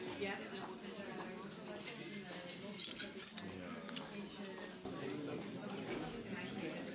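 A fork and spoon clink against a plate.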